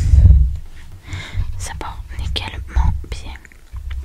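Fingers tap and brush softly near a microphone.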